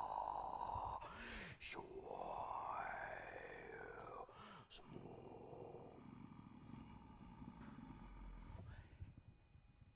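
A homemade instrument sweeps up and down in pitch with whooping tones.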